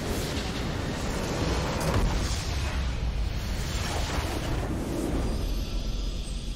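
A large structure explodes with a deep rumbling blast.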